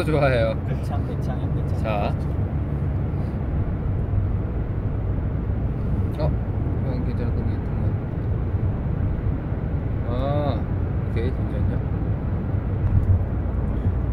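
A car engine hums with a low, steady rumble.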